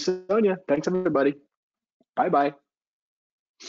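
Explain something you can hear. A middle-aged man speaks calmly and warmly into a microphone, heard as over an online call.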